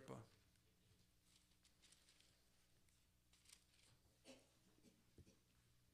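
Paper pages rustle.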